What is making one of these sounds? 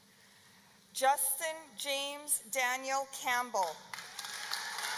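An older woman reads out through a loudspeaker in a large echoing hall.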